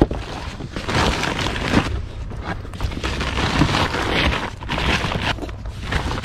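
A plastic bag crinkles and rustles as it is moved.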